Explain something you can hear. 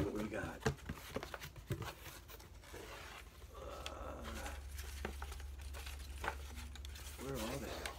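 Packing paper crinkles as a hand digs through it.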